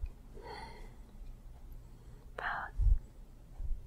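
An elderly woman groans softly in discomfort close by.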